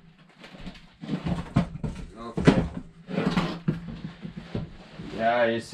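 A wood fire crackles in a stove.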